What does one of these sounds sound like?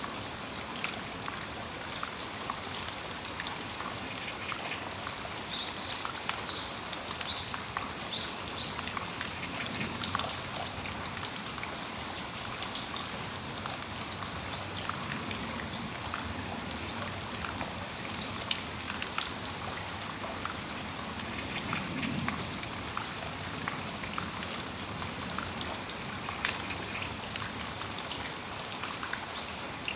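Steady rain falls outdoors, pattering on a metal roof.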